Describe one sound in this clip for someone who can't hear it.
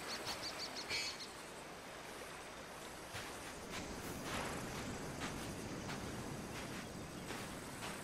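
Footsteps crunch and rustle through dry brush.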